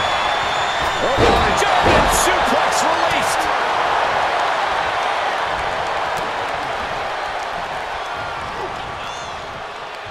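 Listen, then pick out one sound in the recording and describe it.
A large crowd cheers and roars in a big arena, slowly fading.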